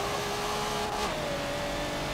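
An engine's pitch drops with a gear change.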